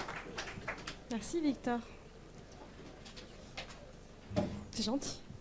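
A young woman speaks briefly into a microphone.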